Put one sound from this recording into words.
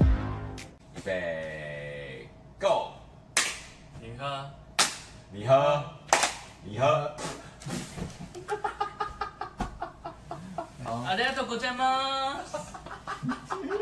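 Several men talk and laugh with animation close by.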